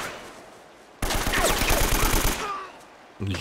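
A rifle fires a rapid burst of shots.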